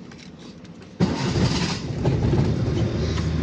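A car engine starts with a sudden roar.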